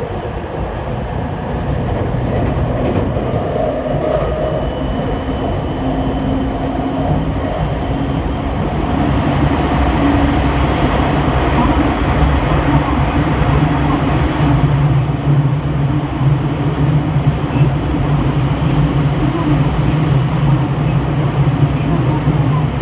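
An electric commuter train runs along the rails with a steady rumble.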